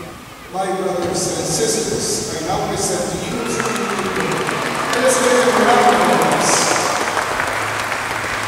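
A man speaks calmly into a microphone, heard through loudspeakers in a large echoing hall.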